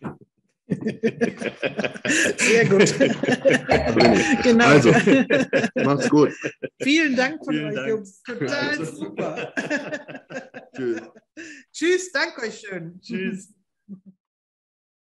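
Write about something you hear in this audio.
Several men and women talk and laugh together over an online call.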